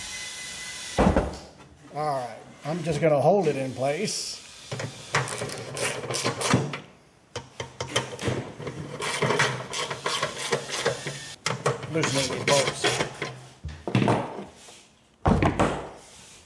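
A metal bumper clunks as it is handled.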